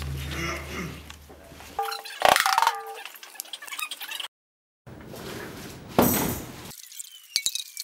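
A drummer plays drums and cymbals loudly.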